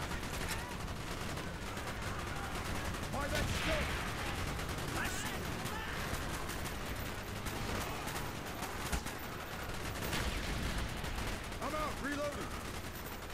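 Distant gunfire and explosions rumble steadily.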